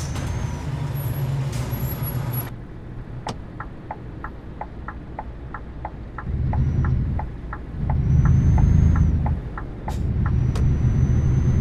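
A truck engine rumbles, rising and falling as it accelerates.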